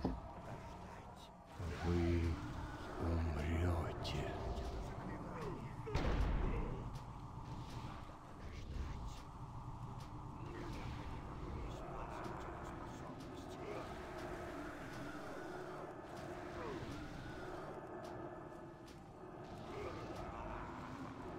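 Magic spells crackle and boom in a busy fight, with bursts of loud impacts.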